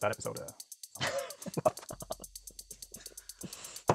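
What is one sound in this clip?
A second man laughs heartily over an online call.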